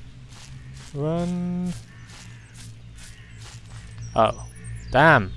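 Crows caw loudly nearby.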